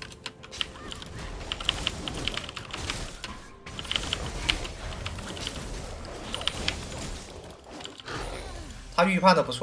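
Video game spells and hits crackle and zap in quick bursts.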